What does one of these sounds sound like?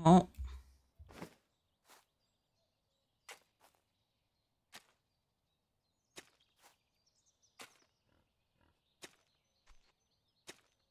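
A hoe strikes and scrapes soil at intervals.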